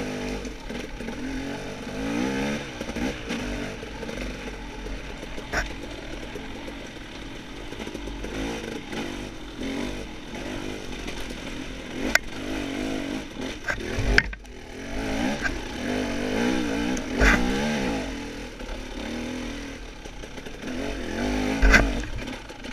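A dirt bike engine revs and sputters up close, rising and falling in pitch.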